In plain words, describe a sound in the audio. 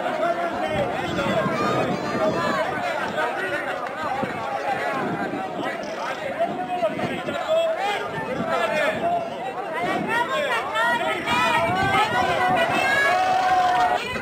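A large crowd of men and women sings together outdoors.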